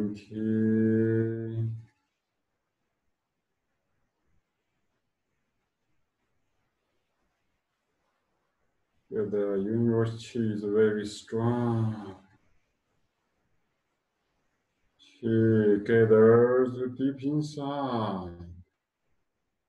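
A man chants slowly and calmly in long drawn-out phrases, close by, with long pauses between.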